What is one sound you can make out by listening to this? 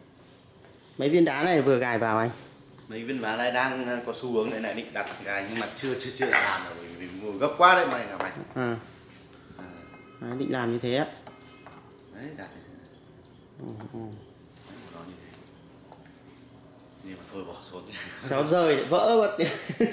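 A middle-aged man speaks calmly and close by, explaining.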